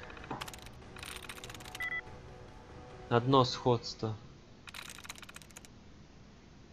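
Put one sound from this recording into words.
Computer keys clatter in quick bursts.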